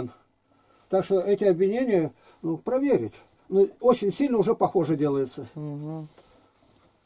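An elderly man speaks calmly up close.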